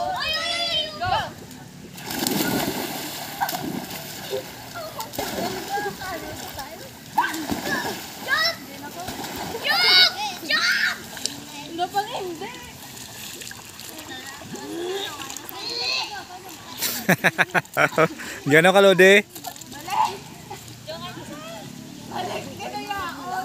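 Young girls shout and squeal excitedly nearby.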